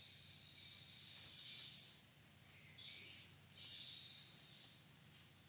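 A fine water mist sprays with a hiss that swells and dips.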